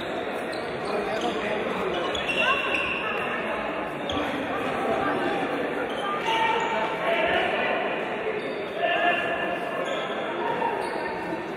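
Spectators murmur and chatter in a large echoing hall.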